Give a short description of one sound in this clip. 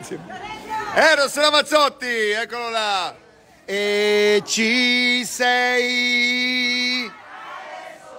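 A large crowd sings together loudly outdoors.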